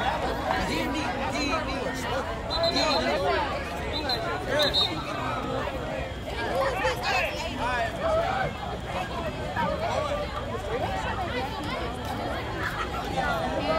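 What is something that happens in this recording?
A crowd of spectators chatters and cheers outdoors.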